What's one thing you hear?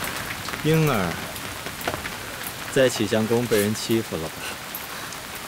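Heavy rain patters steadily on an umbrella.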